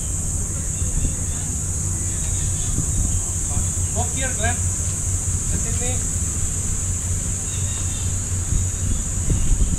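Footsteps of people walking pass on paving.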